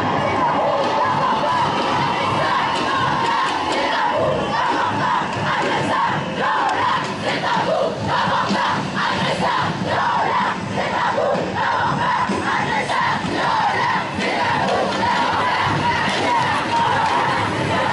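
A large crowd of people chants and shouts loudly outdoors.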